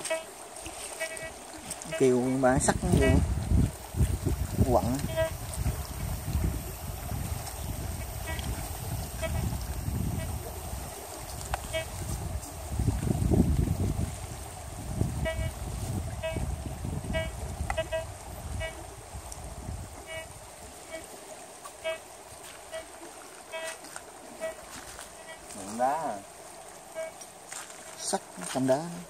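A metal detector beeps in short repeated tones.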